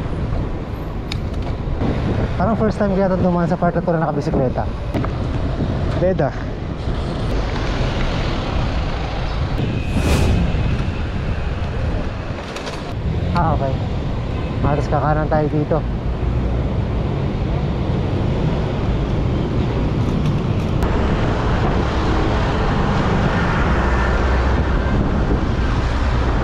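A motorcycle engine hums as it rides past.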